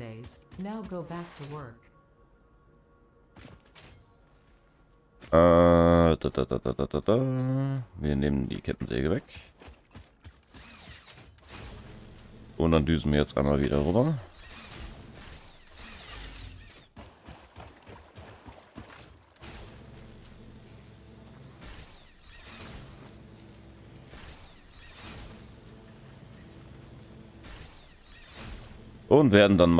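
A man speaks with animation, close to a microphone, in short bursts.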